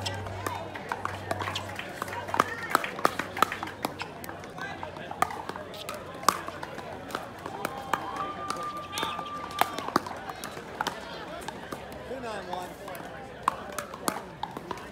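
Paddles strike a plastic ball with sharp pops, back and forth.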